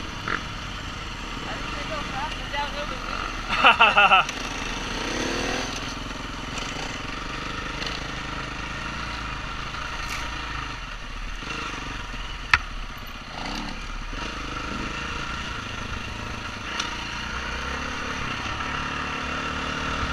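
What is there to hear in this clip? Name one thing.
Tyres crunch and rattle over a rough dirt track.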